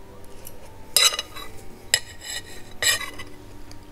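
A fork scrapes against a plate.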